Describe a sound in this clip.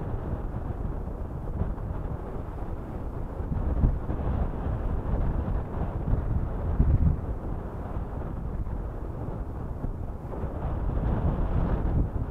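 Water laps against rocks at the shore.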